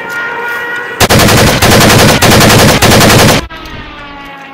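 A rifle fires a rapid burst of loud shots outdoors.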